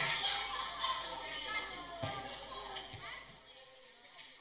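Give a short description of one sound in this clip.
Young girls call out and cheer in an echoing gym.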